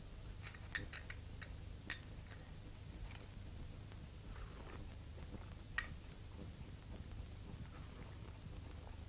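An elderly woman slurps a drink from a saucer.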